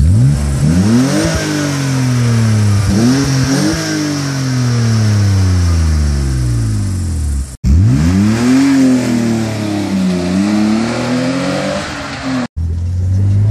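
A car engine revs hard outdoors, its roar rising and falling again and again.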